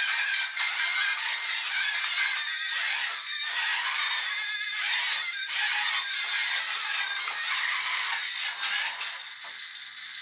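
A toy car's electric motor whirs as it drives and spins across a hard floor.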